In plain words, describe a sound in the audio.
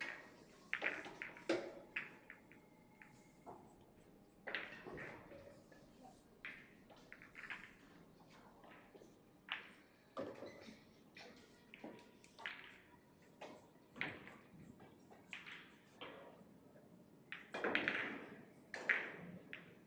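Pool balls clack together as they are racked.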